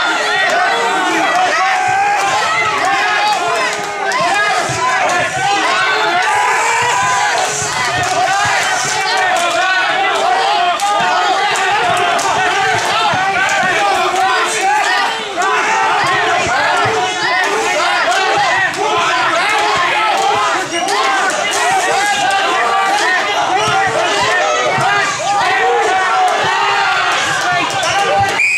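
A man shouts commands to a team pulling a rope.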